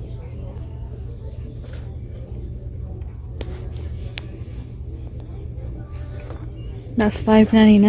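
A cardboard box scrapes and rustles as it is lifted from a shelf.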